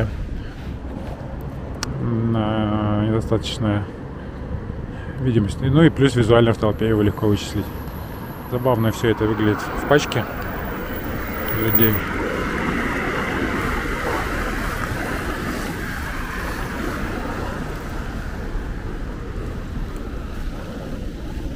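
Skateboard wheels roll and rumble over pavement.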